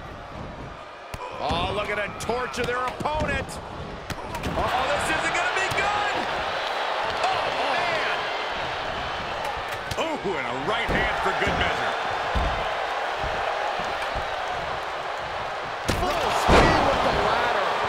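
Heavy thuds sound as bodies slam onto a wrestling mat.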